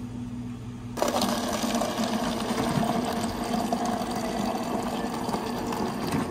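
Water splashes steadily into a cup of ice.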